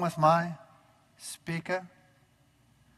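An elderly man speaks through a microphone in a large hall.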